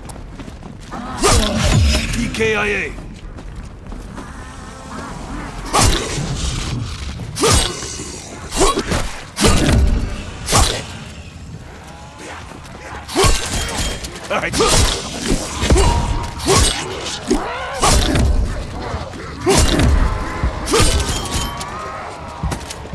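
Zombies snarl and groan close by.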